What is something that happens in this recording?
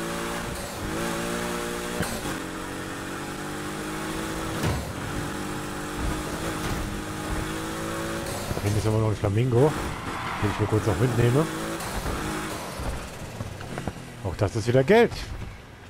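A powerful car engine roars steadily at high revs.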